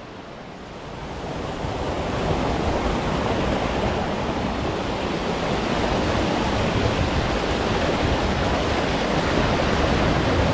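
Water rushes loudly over a small weir.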